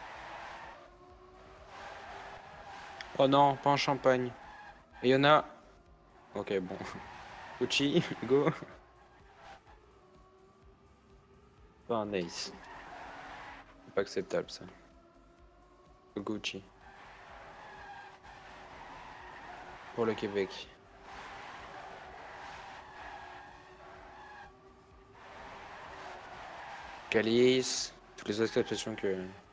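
Racing car engines whine steadily at high speed.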